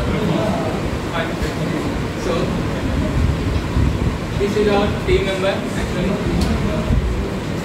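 A young man speaks calmly, presenting to an audience.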